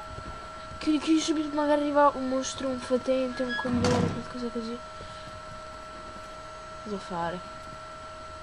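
A boy talks close to a microphone with animation.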